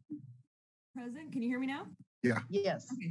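A young woman speaks over an online call.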